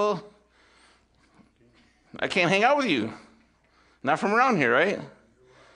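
A man speaks calmly into a microphone in a large room, his voice echoing slightly.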